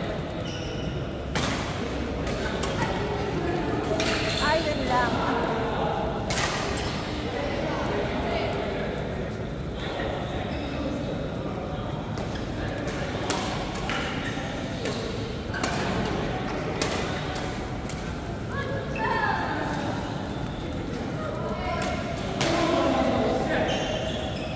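Women call out and chatter nearby.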